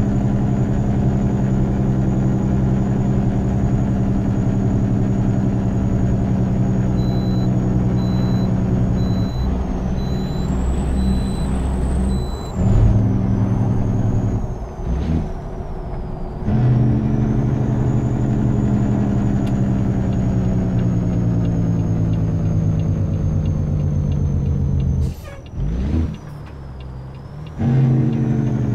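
An inline-six diesel semi-truck engine drones under load, dropping briefly between gear shifts.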